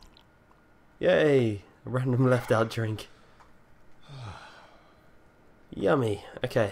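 A man speaks with strain, close by.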